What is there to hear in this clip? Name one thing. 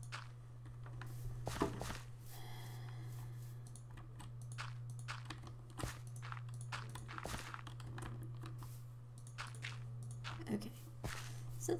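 Blocks of dirt are placed with soft thumps.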